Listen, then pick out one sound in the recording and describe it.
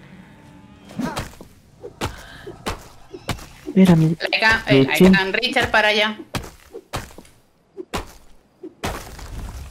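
An axe chops into a tree trunk with dull knocks.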